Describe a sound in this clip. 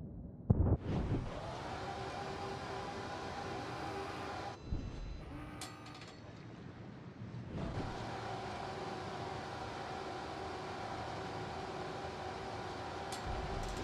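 Waves wash and rush around a moving ship.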